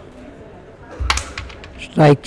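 A carrom striker snaps against a cluster of wooden coins.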